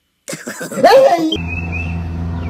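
A young man shouts with excitement close to a microphone.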